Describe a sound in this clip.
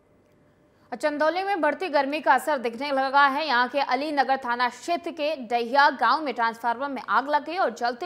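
A woman reads out news clearly into a microphone.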